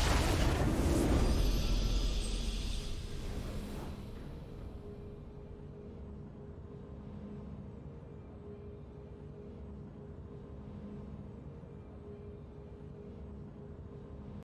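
A triumphant game fanfare swells and then fades.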